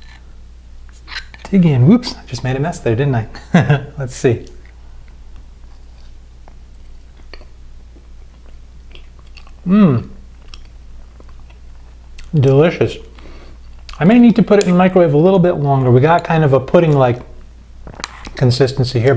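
A spoon clinks against a mug.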